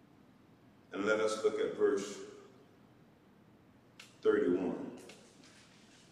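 A man speaks slowly and solemnly into a microphone.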